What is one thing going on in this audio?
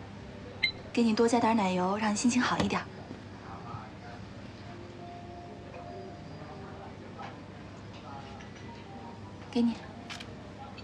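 A young woman speaks warmly and politely.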